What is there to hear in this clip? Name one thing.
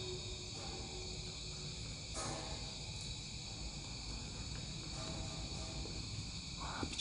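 A man speaks in a low, hushed voice close by.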